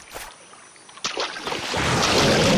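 Water splashes as a crocodile lunges from a river.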